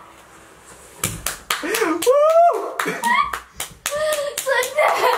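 A young man claps his hands.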